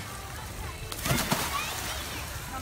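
A young boy splashes into water.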